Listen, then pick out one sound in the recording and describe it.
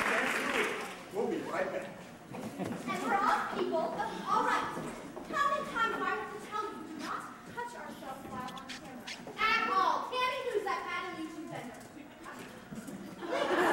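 A young man and young women talk with animation on stage, heard from the audience.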